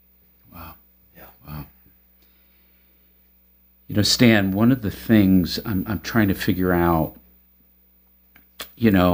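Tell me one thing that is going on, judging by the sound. An older man speaks calmly and expressively into a close microphone.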